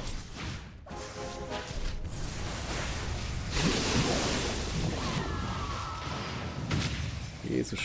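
Game battle effects clash and whoosh.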